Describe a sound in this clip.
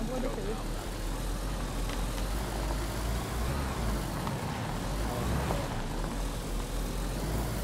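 A car engine rumbles steadily as the car drives.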